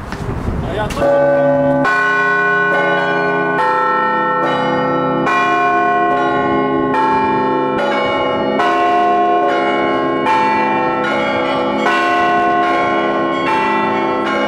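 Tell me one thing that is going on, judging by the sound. Large church bells ring loudly in a fast, rhythmic peal of many clanging tones.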